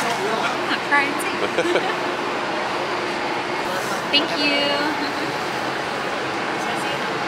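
A steady murmur of a crowd fills the open air.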